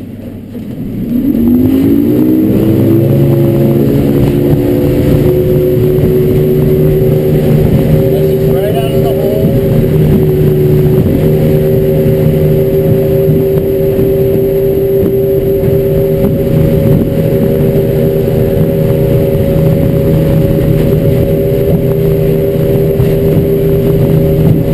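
A boat engine revs up and then drones steadily.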